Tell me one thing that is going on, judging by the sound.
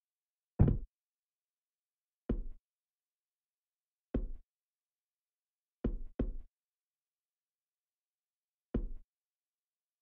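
Heavy thuds land at uneven intervals.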